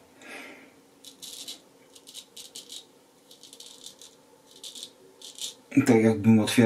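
A razor blade scrapes short strokes across stubble.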